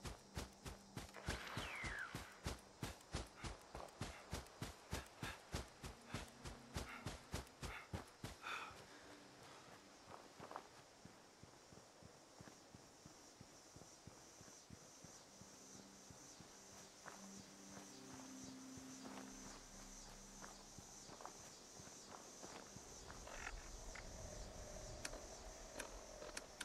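A young man talks quietly into a microphone.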